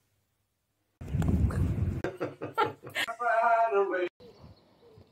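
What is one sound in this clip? A young woman laughs and exclaims excitedly outdoors.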